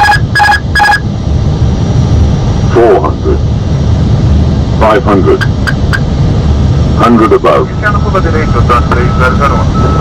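A low, steady roar of aircraft engines and rushing air drones on.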